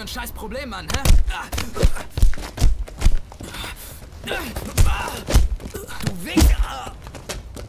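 Heavy blows thud during a scuffle.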